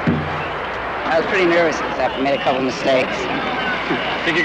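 A young man talks cheerfully nearby.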